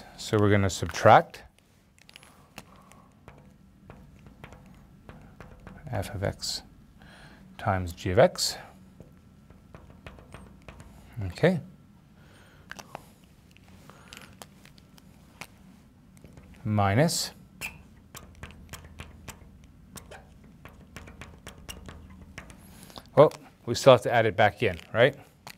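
A man speaks calmly and clearly into a close microphone, in short bursts with pauses.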